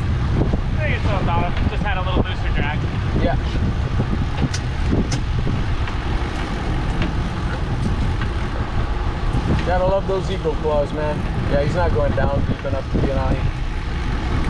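A man talks loudly and excitedly nearby.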